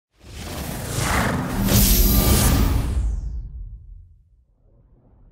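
A deep whooshing swell rises and fades.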